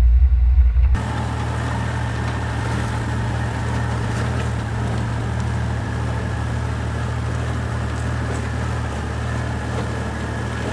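A vehicle engine hums steadily nearby as it crawls slowly over rocks.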